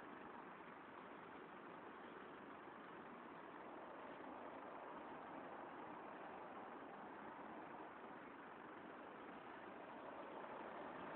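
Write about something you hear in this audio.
Steady city traffic rumbles and hisses nearby outdoors.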